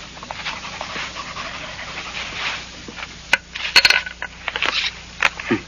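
Papers rustle and crinkle up close.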